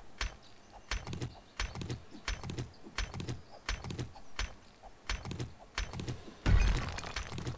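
A stone axe strikes rock in quick, repeated knocks.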